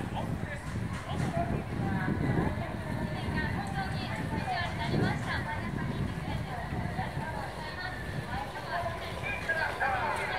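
An electric guitar strums along through loudspeakers.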